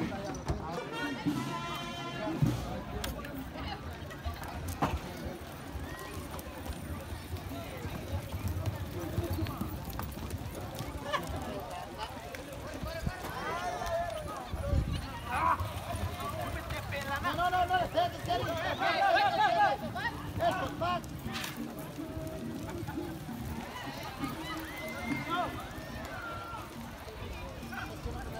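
A crowd of men and women talk and call out nearby outdoors.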